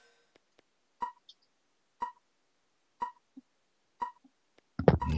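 A game's countdown timer beeps at a steady pace.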